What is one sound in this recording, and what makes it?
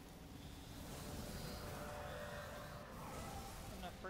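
A shimmering electric whoosh swells and fades.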